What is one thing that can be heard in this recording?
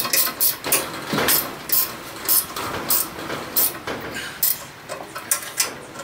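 A wrench clicks and rattles against metal bolts.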